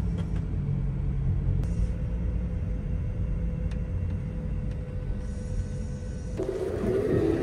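A vehicle's engine and tyres rumble low and steady from inside the cabin.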